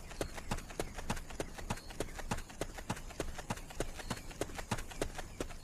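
Footsteps crunch quickly on gravel and grass.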